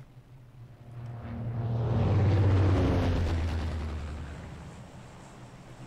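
An airplane roars loudly past and fades away.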